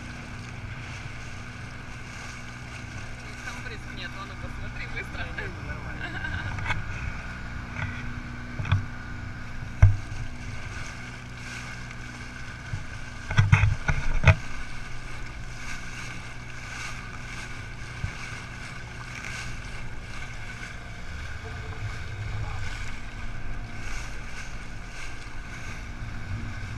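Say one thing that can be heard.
A boat's engine hums steadily.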